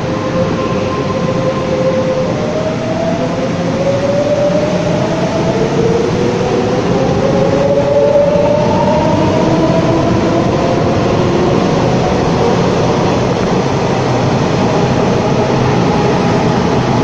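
An electric multiple-unit train rushes past close by in an echoing underground station.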